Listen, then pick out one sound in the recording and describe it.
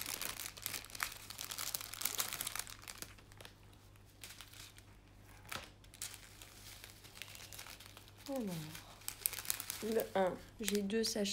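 Small plastic bags of beads rustle and crinkle in hands.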